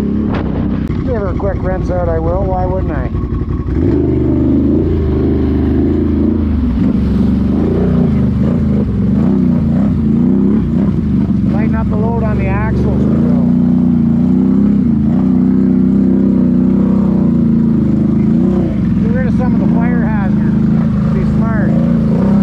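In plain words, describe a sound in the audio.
Muddy water splashes and sloshes under wheels.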